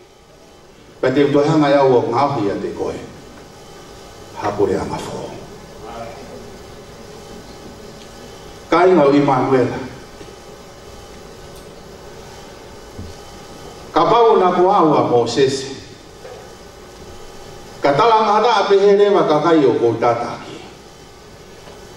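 A man speaks with feeling into a microphone, in bursts with pauses, in a reverberant room.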